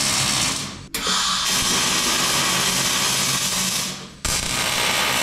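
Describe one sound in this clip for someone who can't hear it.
An arc welder crackles and sizzles steadily.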